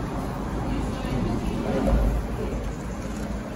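A man speaks quietly close by.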